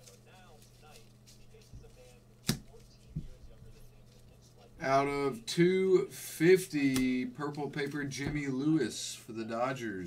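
Trading cards shuffle and slide in gloved hands.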